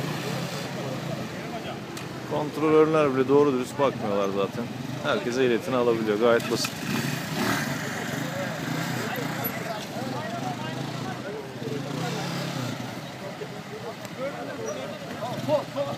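Motor scooter engines idle and putter nearby.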